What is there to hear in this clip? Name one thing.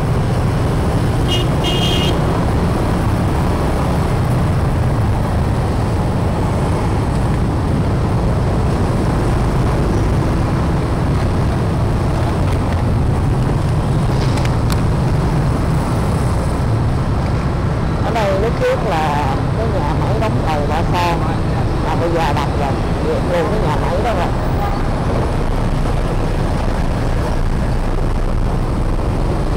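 Motorbike engines hum steadily in slow, dense traffic close by.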